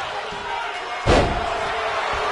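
A body slams hard onto a wrestling ring mat with a heavy thud.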